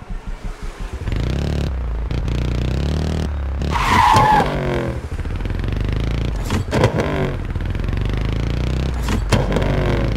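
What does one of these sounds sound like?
Motorcycle engines roar loudly as they race off.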